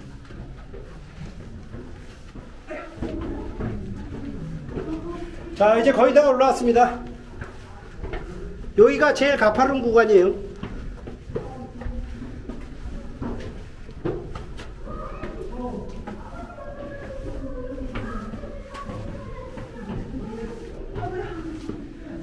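Footsteps scuff and tap on stone steps.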